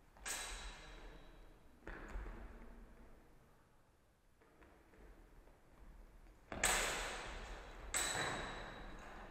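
Loud impacts echo through a large hall.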